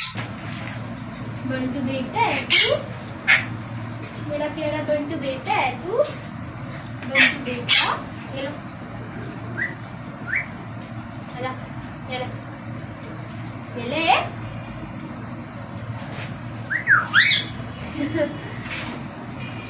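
A young girl talks softly to the birds.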